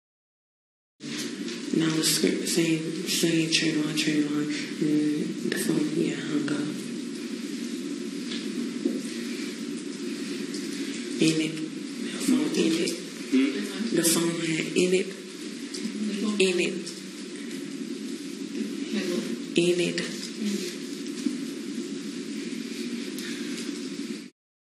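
A young woman speaks haltingly into a microphone.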